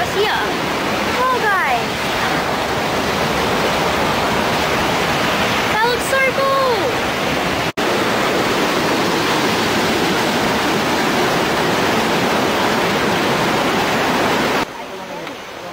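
Rushing water roars loudly nearby.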